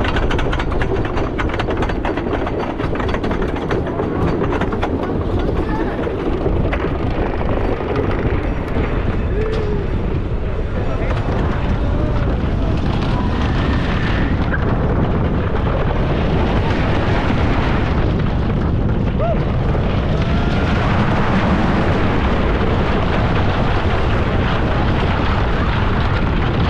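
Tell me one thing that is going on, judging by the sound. Wind roars steadily against the rider.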